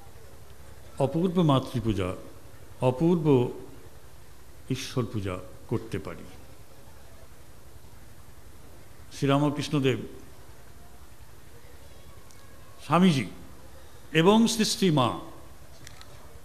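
A middle-aged man speaks slowly and deliberately into a microphone, with long pauses between phrases.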